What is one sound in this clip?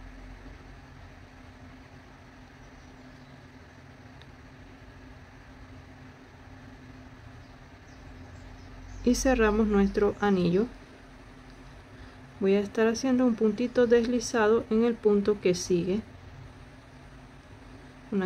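A crochet hook softly rustles through thread.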